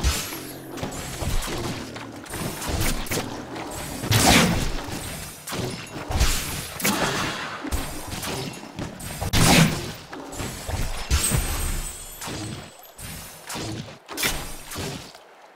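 Game spells burst and crackle in a busy fight.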